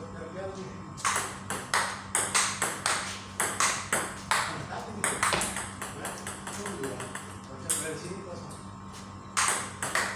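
A table tennis ball clicks quickly back and forth on paddles and a table.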